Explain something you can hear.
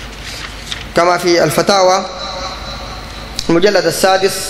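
A man recites in a chanting voice through a microphone.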